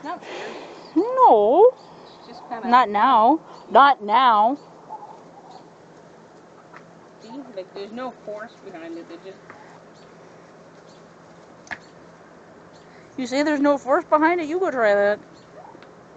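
Goats bleat loudly and close by in wavering cries.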